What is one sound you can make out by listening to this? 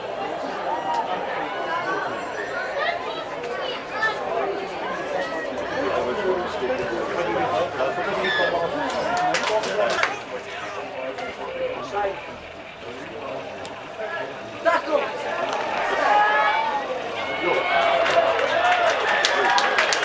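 Spectators and players shout and call out across an open field outdoors.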